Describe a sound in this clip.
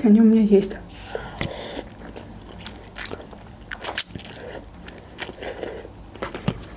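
A young woman slurps noodles close to a microphone.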